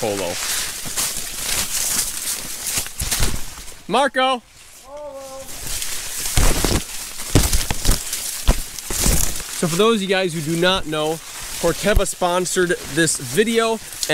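Corn leaves rustle and crackle as they are pushed aside.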